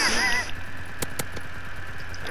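A submachine gun fires in short, sharp bursts.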